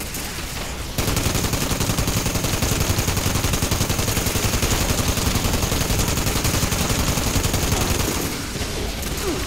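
A heavy rotary gun fires in a long, rapid, buzzing burst.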